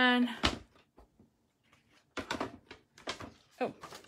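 A plastic machine is set down on a hard countertop with a knock.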